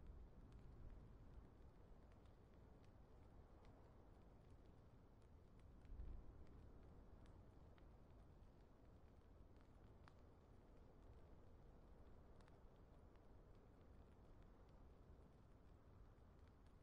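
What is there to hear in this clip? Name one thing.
Fire crackles softly with a low rumble.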